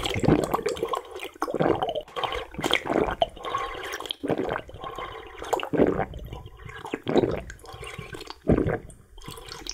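A man slurps and sips a drink up close.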